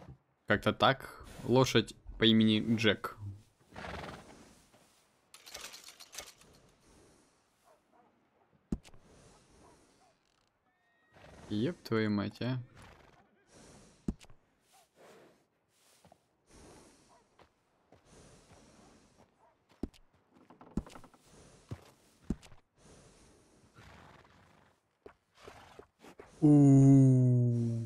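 A horse whinnies and snorts close by.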